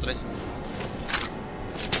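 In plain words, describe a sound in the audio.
Metal clicks as a rifle is handled and reloaded.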